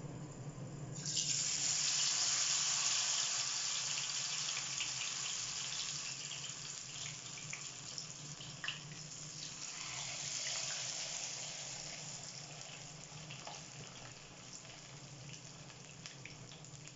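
Oil sizzles and crackles steadily around frying fish.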